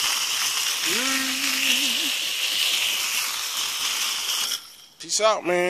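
A pressure washer sprays water hard against metal with a loud steady hiss.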